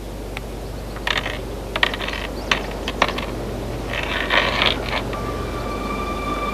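A metal chain rattles and clinks.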